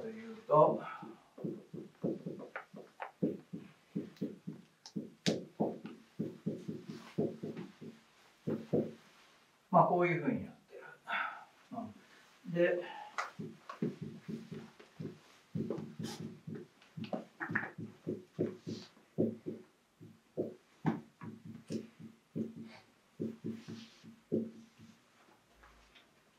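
An elderly man speaks steadily.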